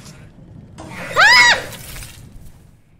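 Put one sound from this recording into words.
A young woman screams loudly.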